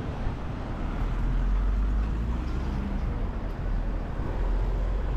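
A car drives past close by with a low rumble.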